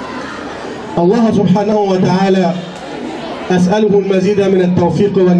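An older man speaks with animation into a microphone, heard through loudspeakers.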